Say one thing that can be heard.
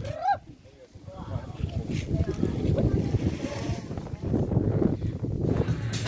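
A crowd of men and women murmurs quietly outdoors.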